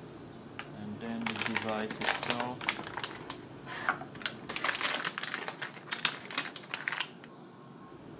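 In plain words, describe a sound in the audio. A plastic foil bag crinkles loudly as hands open it.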